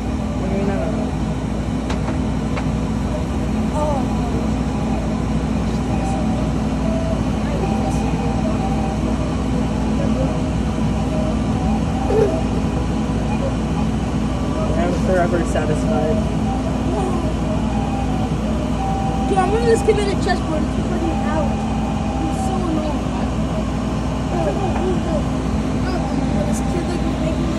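A laser cutter hums steadily with a whirring fan.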